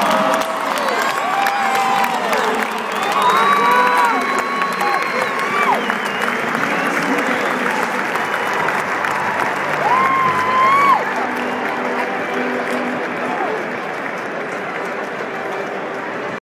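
A huge crowd cheers and roars in an open stadium.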